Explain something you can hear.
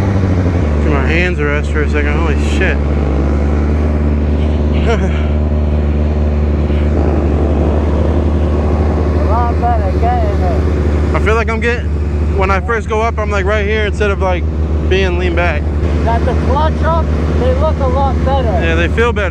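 A man talks nearby over the idling engine.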